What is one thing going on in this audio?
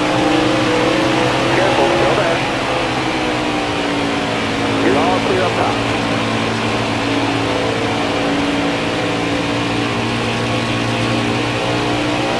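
Racing truck engines roar at high speed with a steady drone.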